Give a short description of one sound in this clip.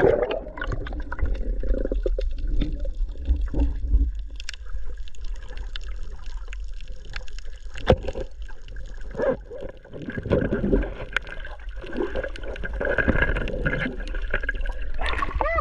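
Water bubbles and rumbles in muffled underwater tones.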